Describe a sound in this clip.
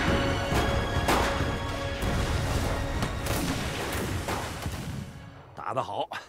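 Explosions boom and rumble loudly.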